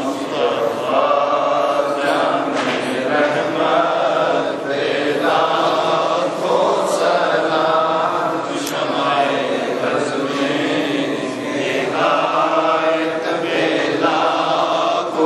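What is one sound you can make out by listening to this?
An elderly man speaks steadily and loudly to a group.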